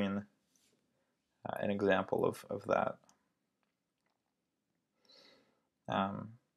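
A young man speaks calmly and close to a microphone, in short bursts.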